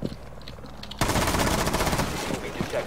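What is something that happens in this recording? A wooden barricade splinters and cracks as it is smashed apart.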